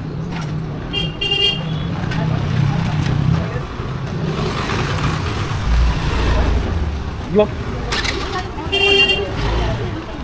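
A motorbike horn honks in short bursts.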